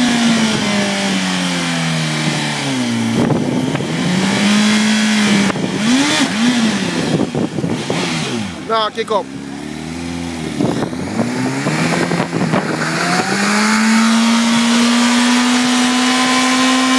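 A motorcycle engine revs up and down repeatedly.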